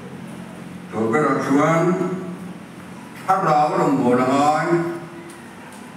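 A man speaks over a loudspeaker in a large echoing hall, in short bursts.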